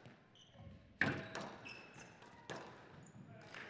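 A squash ball smacks hard against the walls, echoing in a large hall.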